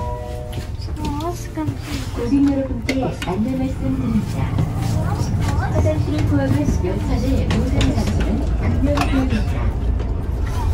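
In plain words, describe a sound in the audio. A young boy talks and calls out close by.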